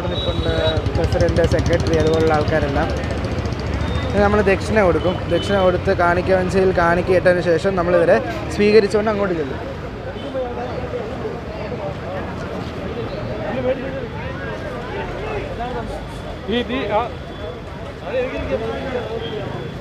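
Several men talk with animation nearby, outdoors.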